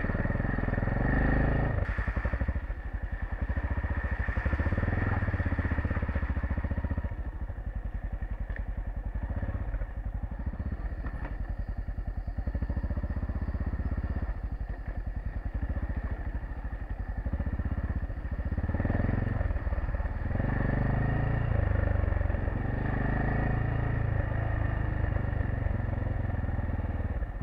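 A motorcycle engine thrums and revs up and down close by.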